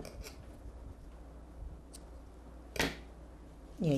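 Scissors snip through thread.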